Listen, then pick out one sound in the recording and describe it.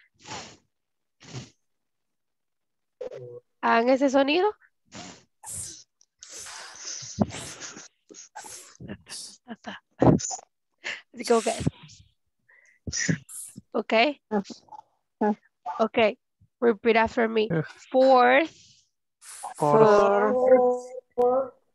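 A young woman speaks clearly and calmly through a microphone, as in an online call.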